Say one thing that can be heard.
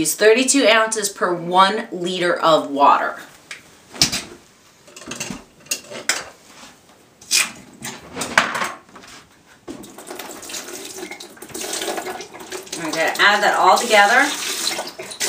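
A woman talks animatedly close by.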